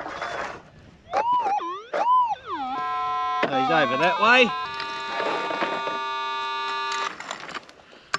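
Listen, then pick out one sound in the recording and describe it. A metal detector warbles and beeps in rising and falling tones.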